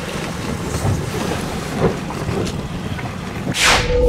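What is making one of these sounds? Water splashes against the hulls of racing catamarans.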